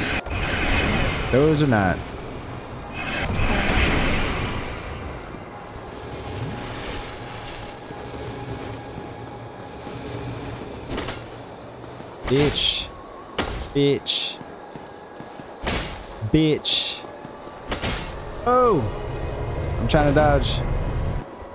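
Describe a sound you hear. A young woman speaks into a headset microphone.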